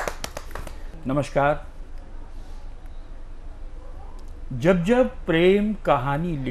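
An elderly man recites in a slow, sing-song voice into a microphone.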